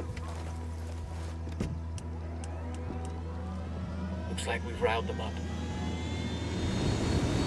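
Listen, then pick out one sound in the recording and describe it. A helicopter's rotor drones and whirs steadily.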